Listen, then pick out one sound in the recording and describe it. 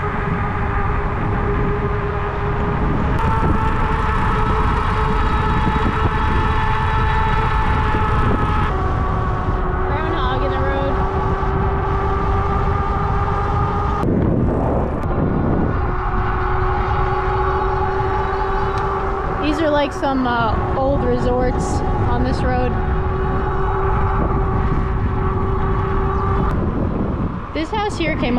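An electric bike motor whines steadily.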